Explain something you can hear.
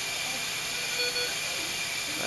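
A patient monitor gives a short electronic beep.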